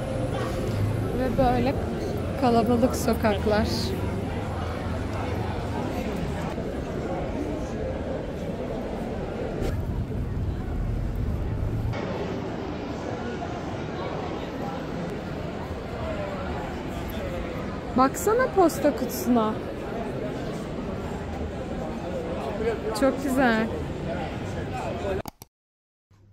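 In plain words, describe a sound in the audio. A crowd murmurs along a busy street at night.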